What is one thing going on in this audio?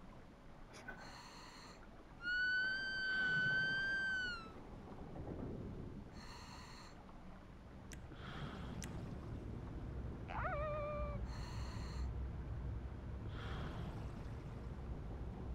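Bubbles burble in short bursts from a diver's breathing underwater.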